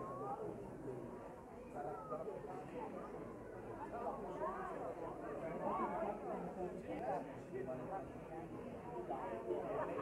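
A crowd of diners chatters in the background outdoors.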